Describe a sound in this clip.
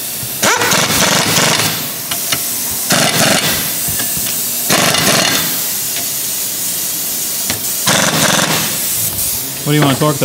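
A power tool whirs in loud bursts.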